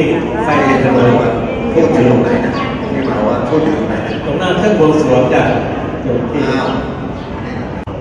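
A group of people chant together.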